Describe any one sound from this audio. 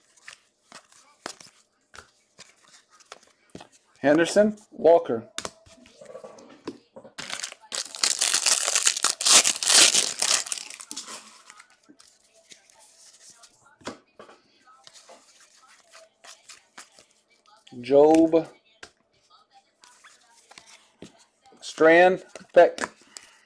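Trading cards flick and rustle.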